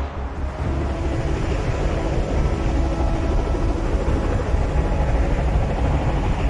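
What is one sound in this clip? Huge engines rumble deeply and steadily overhead.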